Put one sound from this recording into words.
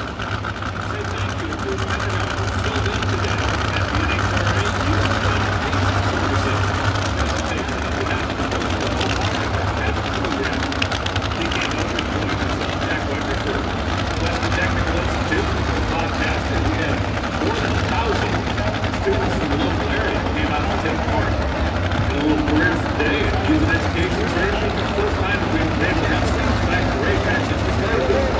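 A dragster engine roars loudly and steadily.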